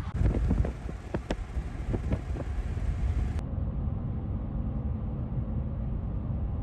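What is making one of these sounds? A vehicle rumbles low and steady as it drives along a road.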